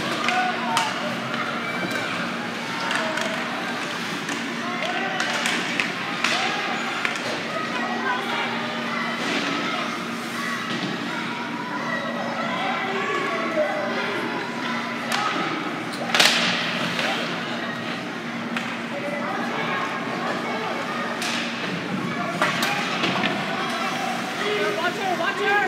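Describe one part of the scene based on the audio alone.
A crowd of spectators chatters steadily in a large echoing arena.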